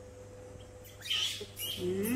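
A baby monkey squeals shrilly up close.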